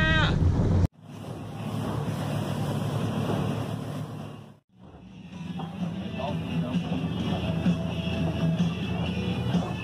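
Twin outboard engines drone as a boat runs over water.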